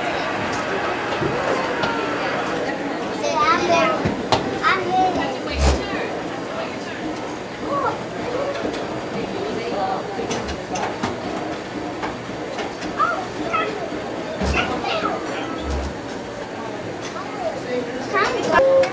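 Young children talk and call out excitedly nearby.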